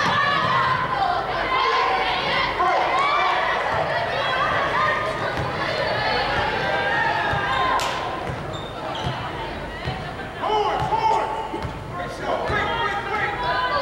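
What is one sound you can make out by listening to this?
Sneakers squeak on a hardwood court in a large echoing gym.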